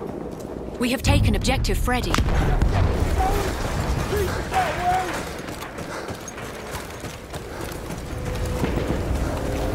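A large explosion booms close by and rumbles.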